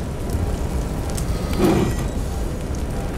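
A flamethrower roars in a short burst.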